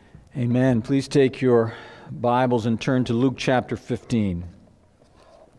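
A man reads aloud calmly through a microphone in an echoing hall.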